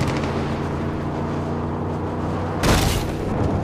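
A car engine idles with a low hum.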